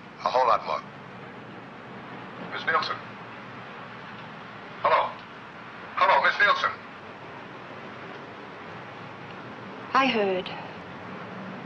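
A middle-aged woman speaks anxiously into a telephone in short bursts, close by.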